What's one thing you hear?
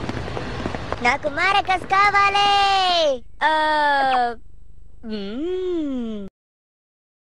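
A young boy speaks in a high, playful voice.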